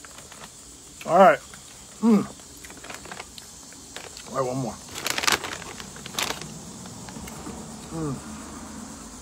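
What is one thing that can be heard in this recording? A man hums with his mouth closed, in short pitched bursts.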